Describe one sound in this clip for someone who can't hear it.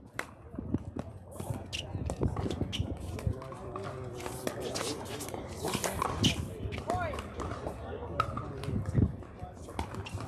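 Paddles strike a plastic ball with sharp, hollow pops, outdoors.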